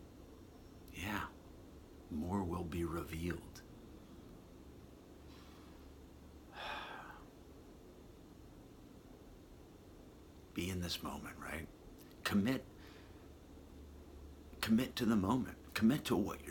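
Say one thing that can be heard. A middle-aged man speaks calmly and close up, with long pauses.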